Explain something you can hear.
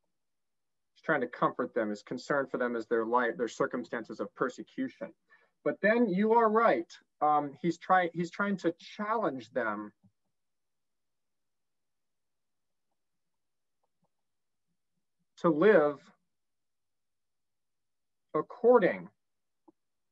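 A man speaks calmly over an online call, explaining at a steady pace.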